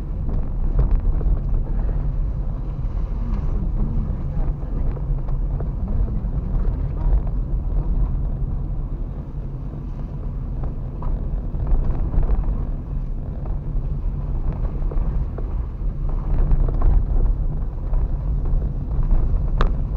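A car engine hums steadily inside a car.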